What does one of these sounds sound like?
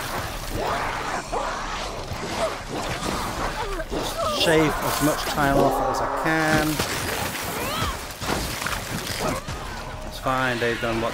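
Gunfire and explosions crackle from a video game.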